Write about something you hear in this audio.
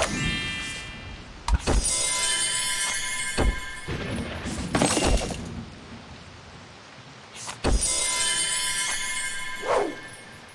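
Bright sparkling chimes ring out.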